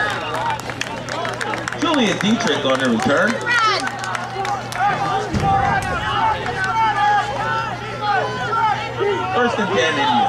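Young men call out and talk loudly outdoors.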